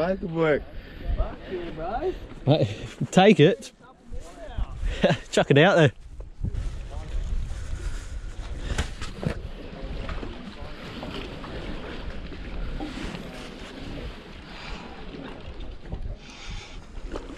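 Water laps against wooden pilings.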